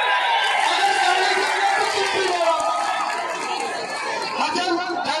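A large outdoor crowd chatters and shouts steadily.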